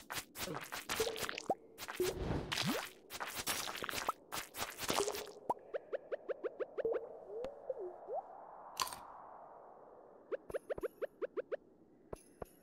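Short rising blips pop in quick bursts as game items are collected.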